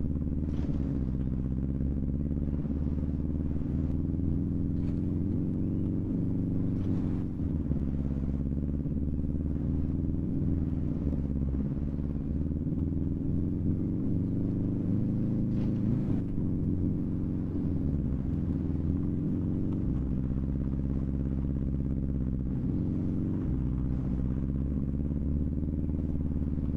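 A car engine roars steadily, shifting pitch as it revs up and down.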